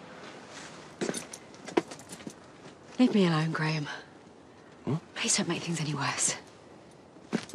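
A woman speaks anxiously close by.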